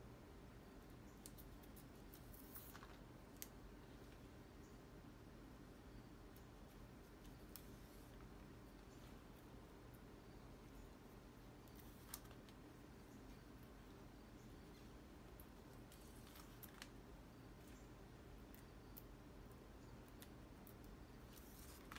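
Thread pulls and rustles through dried chili peppers.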